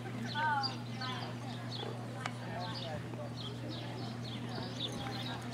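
A horse canters with dull hoofbeats on soft ground.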